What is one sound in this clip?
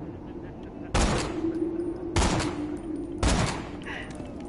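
A rifle fires three loud, sharp shots.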